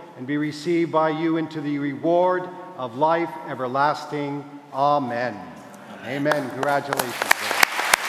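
An elderly man chants a blessing in a large echoing hall.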